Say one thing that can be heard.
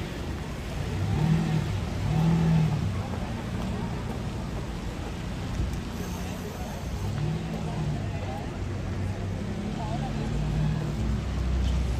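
A sports car engine revs in short bursts.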